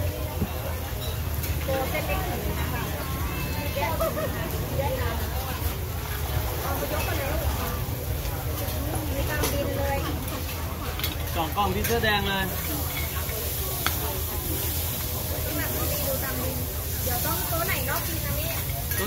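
Men and women chatter in the background.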